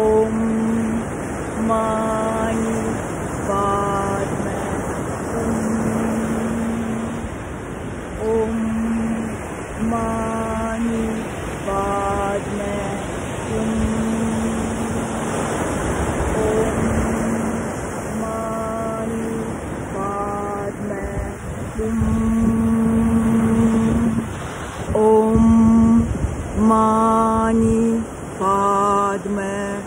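Waves crash and wash up onto a beach.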